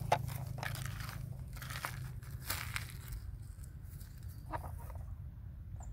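A small plastic shovel scrapes and rattles through loose gravel.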